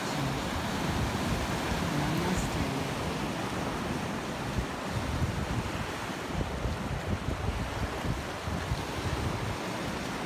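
Waves wash over rocks and break on the shore.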